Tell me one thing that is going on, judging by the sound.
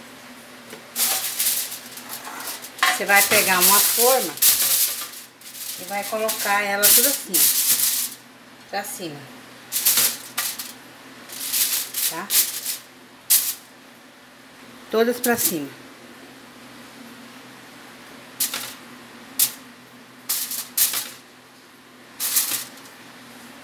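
Aluminium foil crinkles as it is handled.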